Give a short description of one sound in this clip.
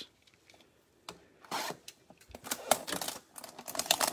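A blade slices through plastic wrap with sharp scratching.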